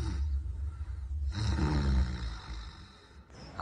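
A man snores loudly.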